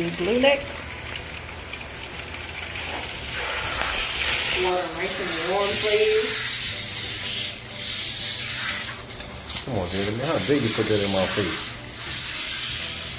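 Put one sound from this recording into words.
Water sprays and splashes steadily.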